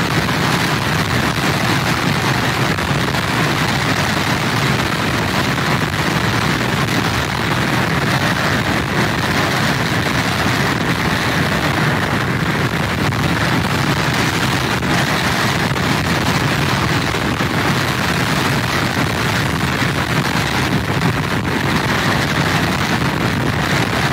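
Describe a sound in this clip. Strong wind blows hard outdoors.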